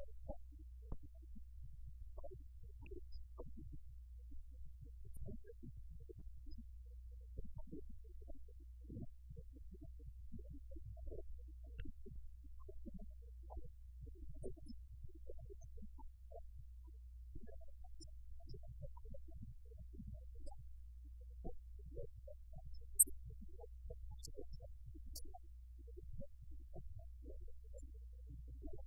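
A middle-aged man speaks calmly and steadily.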